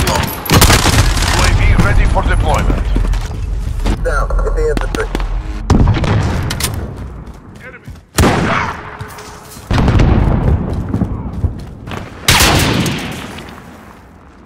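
Loud gunshots boom with echoing tails.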